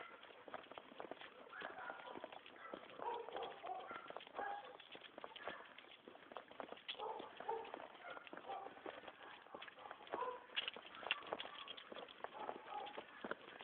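A dog's claws click on paving stones as it walks.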